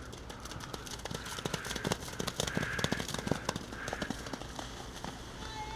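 Mud sprays up as a horse skids to a stop.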